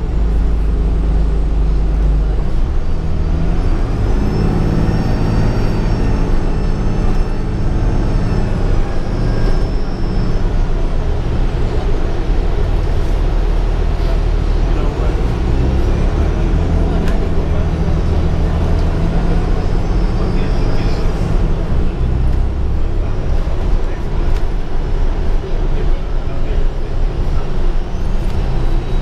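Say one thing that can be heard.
A bus engine rumbles and drones steadily from inside the cabin.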